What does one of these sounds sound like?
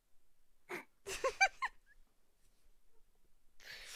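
A young woman laughs close to a microphone.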